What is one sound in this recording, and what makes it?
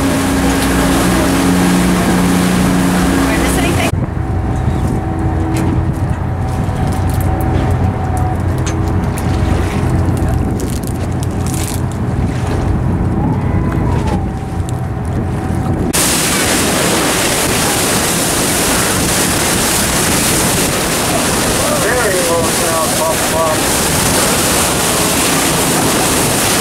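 Wind blows strongly outdoors across open water.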